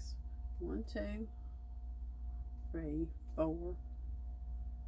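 A woman speaks calmly and close to a microphone, in short phrases.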